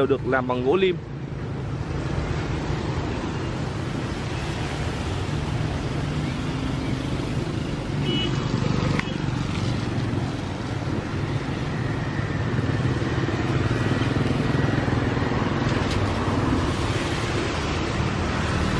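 Distant traffic rumbles steadily outdoors.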